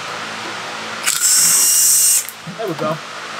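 A cordless power tool whirs in a short burst.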